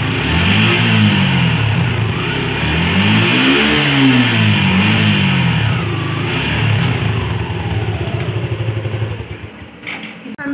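A motorcycle engine runs close by, revving up and down.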